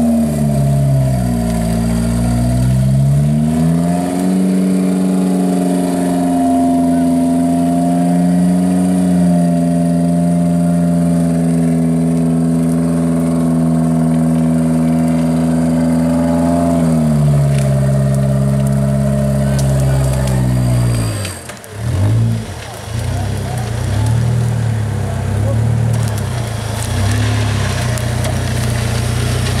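An off-road buggy engine revs hard.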